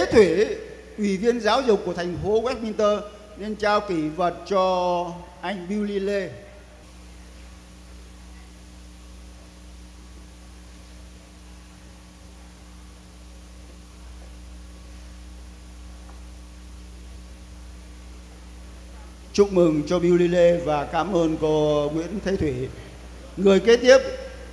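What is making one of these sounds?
A man announces into a microphone, heard through loudspeakers in a large hall.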